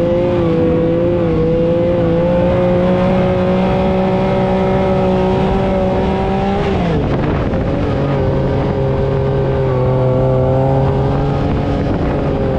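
Tyres rumble over bumpy sand.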